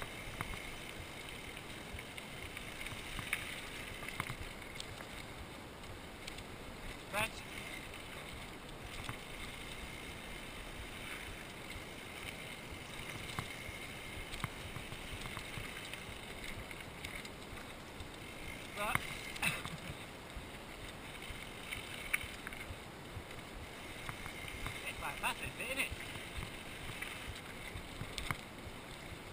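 A mountain bike rattles over bumps in the trail.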